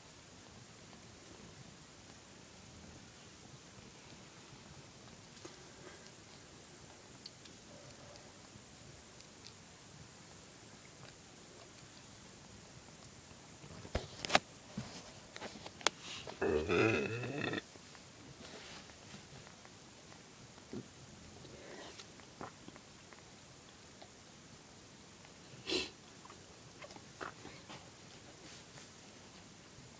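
A cat licks its fur with soft wet sounds.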